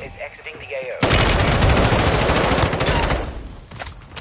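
Rapid gunfire rattles loudly and close by.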